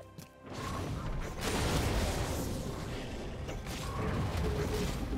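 Video game combat effects clash and whoosh in quick, busy bursts.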